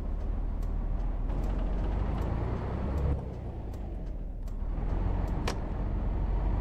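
Small clicks and rattles sound inside a bus.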